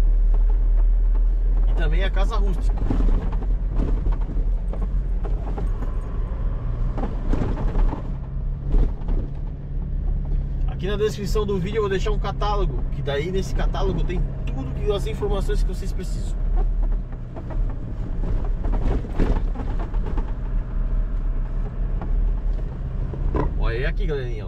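Tyres rumble and crunch over a dirt road.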